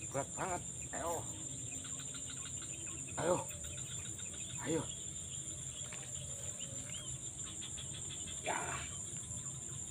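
A man calls out in short bursts outdoors.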